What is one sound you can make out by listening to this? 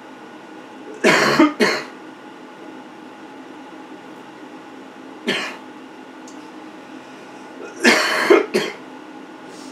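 A young man laughs close by.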